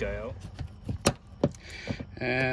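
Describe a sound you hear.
A metal tool scrapes and clicks against a bolt.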